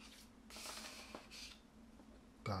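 Cards slide and scrape across a table.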